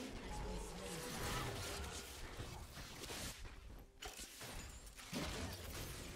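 Game spells crackle and burst during a fight.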